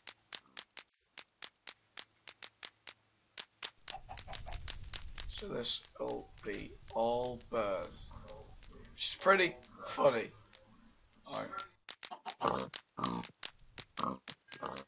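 Fire crackles and pops in quick, sharp snaps.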